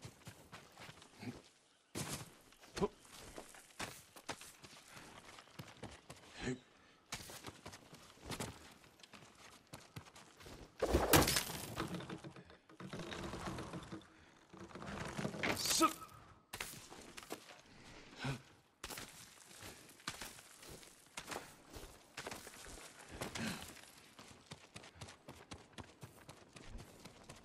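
Footsteps scuff over grass and stone.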